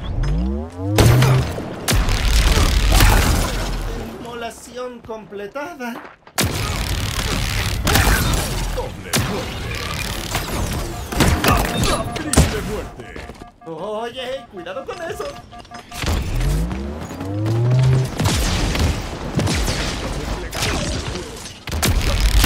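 Energy weapons fire in rapid zapping bursts.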